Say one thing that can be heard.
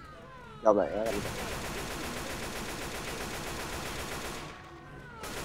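A rifle fires rapidly in bursts.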